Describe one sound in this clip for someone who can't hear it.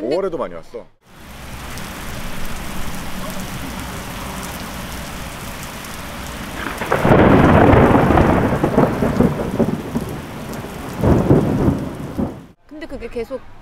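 Heavy rain pours down outdoors, hissing steadily.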